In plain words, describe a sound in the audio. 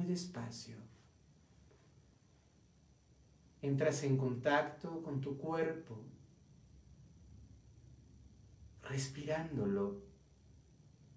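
A man speaks slowly and softly close to a microphone, with long pauses.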